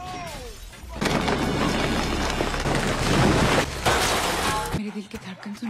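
A house crashes and tumbles down a rocky cliff.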